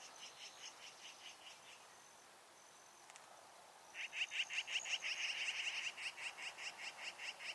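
An eagle calls nearby with rapid, high chittering chirps.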